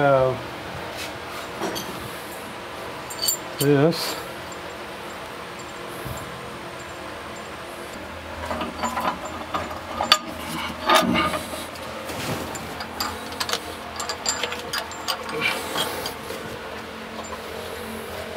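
Metal clanks and knocks as a man works.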